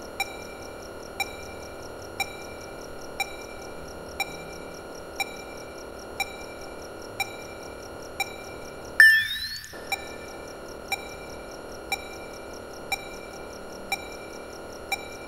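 A computer beeps softly about once a second.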